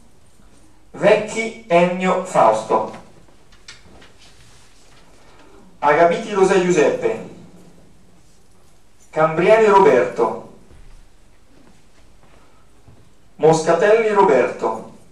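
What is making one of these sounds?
A man speaks nearby in short bursts with pauses between.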